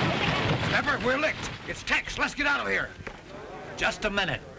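Men shout in a group nearby.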